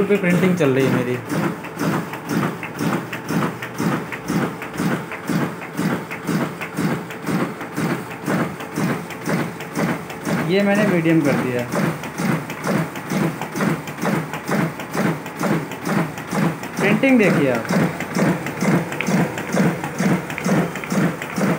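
A digital duplicator prints sheets of paper with a fast, rhythmic thumping.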